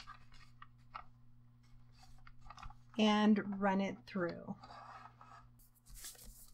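Paper rustles and crinkles in someone's hands.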